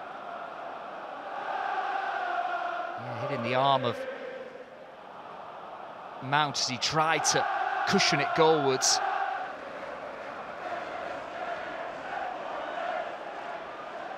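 A large stadium crowd roars and chants throughout.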